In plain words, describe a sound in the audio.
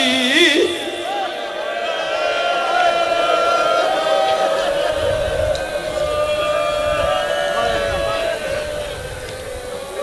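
A man chants loudly with emotion through a microphone.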